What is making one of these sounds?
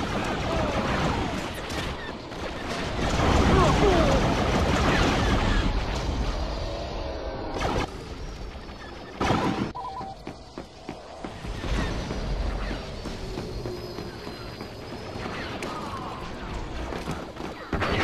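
Blaster shots fire and zap in rapid bursts.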